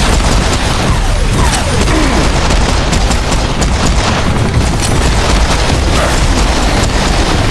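Explosions boom one after another.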